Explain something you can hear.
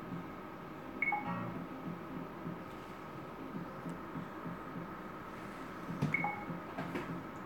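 A slot machine gives short bright chimes.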